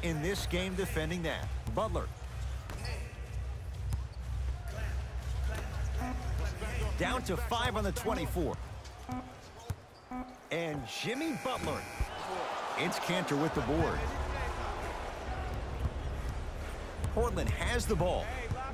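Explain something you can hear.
A crowd murmurs and cheers in a large arena.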